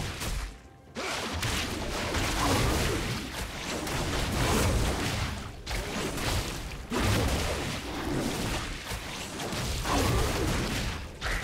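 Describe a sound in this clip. Magic blasts and hits crackle and thump during a fast fight.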